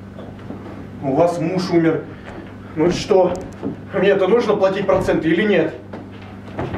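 A man speaks loudly and expressively in a room.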